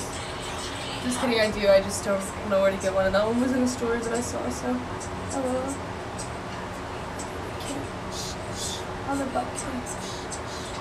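A young woman talks casually and close by, as if into a phone microphone.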